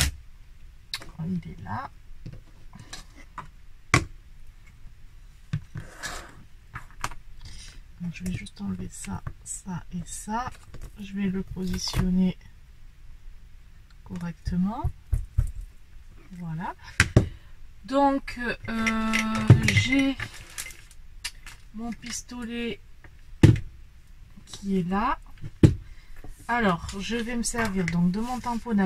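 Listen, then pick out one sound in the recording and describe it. Small hard objects tap and click on a table.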